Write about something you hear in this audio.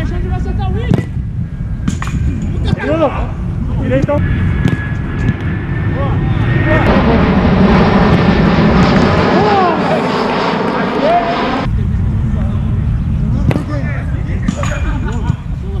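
A football is kicked with a sharp thump.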